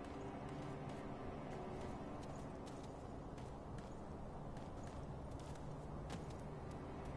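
Footsteps scrape and tap on rock.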